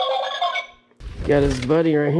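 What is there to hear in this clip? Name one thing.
Plastic toys clatter as hands rummage through a cardboard box.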